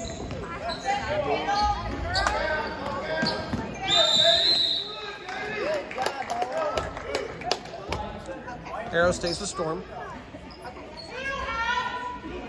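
Young players' voices call out across an echoing gym.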